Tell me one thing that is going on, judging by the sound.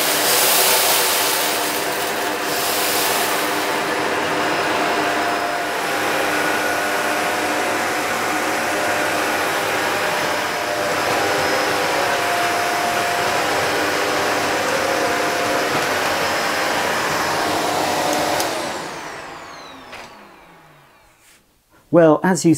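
A vacuum cleaner hums and whirs steadily, then winds down to a stop.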